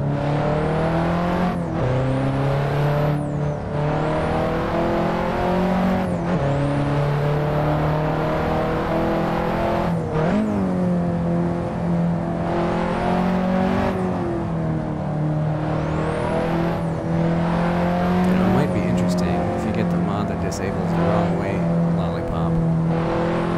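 A car engine drones steadily, its pitch rising and dropping sharply as gears change.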